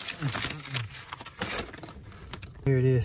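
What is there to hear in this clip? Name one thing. A paper bag rustles and crinkles close by.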